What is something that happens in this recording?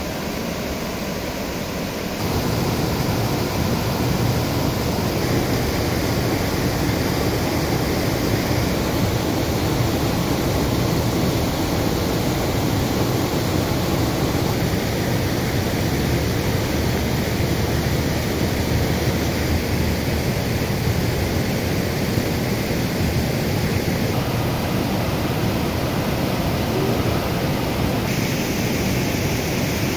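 Water pours steadily over a weir and splashes loudly onto rocks below.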